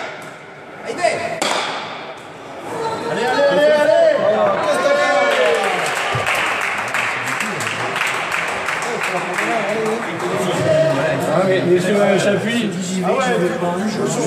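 A wooden paddle strikes a hard ball in an echoing hall.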